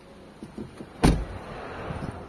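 A car door shuts with a heavy thud.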